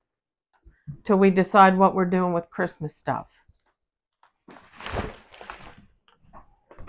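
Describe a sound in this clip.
Wrapping paper rolls rustle and crinkle as they are handled.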